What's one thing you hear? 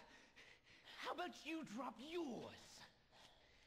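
A young man speaks tensely and threateningly, close by.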